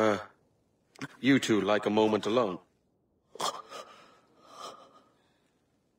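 A young man speaks urgently.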